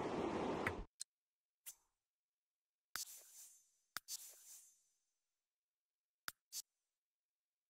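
Short game interface clicks sound.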